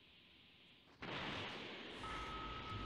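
An energy blast whooshes and roars.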